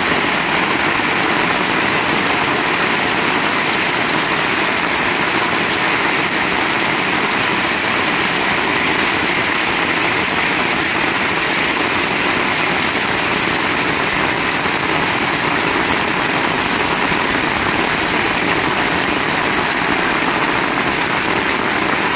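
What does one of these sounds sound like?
Steady rain falls and patters on the ground outdoors.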